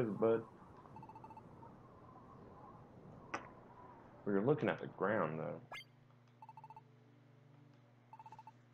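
Short electronic blips chirp in quick bursts.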